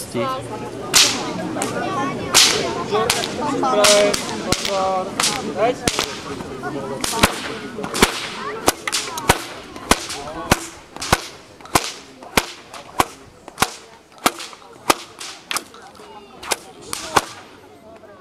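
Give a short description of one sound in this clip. A whip cracks sharply again and again outdoors.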